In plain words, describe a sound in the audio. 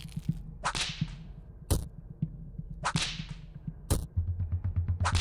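A whip lashes with a sharp swishing crack, again and again.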